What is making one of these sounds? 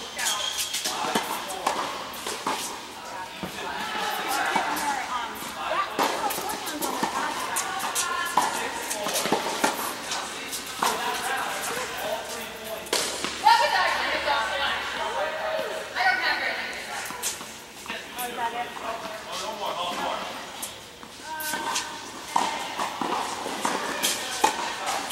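Tennis rackets hit a ball back and forth in a large echoing hall.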